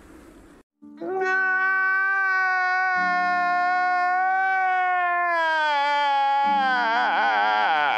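A middle-aged man wails loudly in a long, drawn-out cry.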